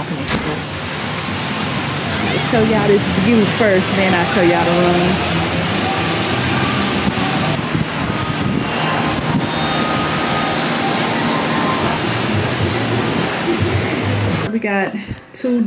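Surf rolls onto a beach in the distance.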